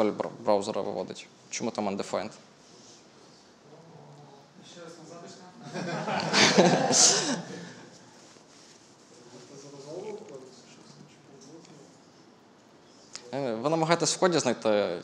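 A young man speaks calmly through a microphone, with pauses.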